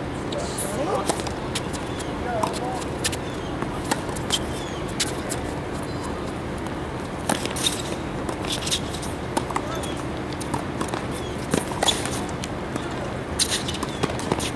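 Tennis shoes squeak and scuff on a hard court.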